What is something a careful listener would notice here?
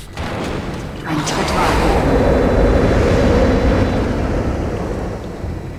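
A heavy metal door slides open with a loud hiss.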